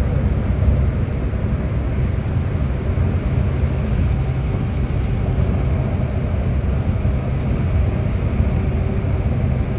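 Tyres roar on the road in an echoing tunnel.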